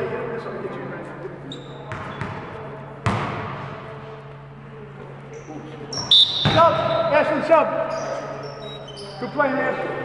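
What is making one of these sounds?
Men call out and talk at a distance in an echoing hall.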